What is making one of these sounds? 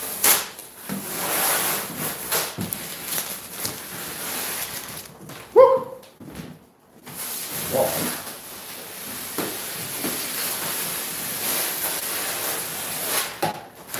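Tape rips and crackles as it is peeled off a wall.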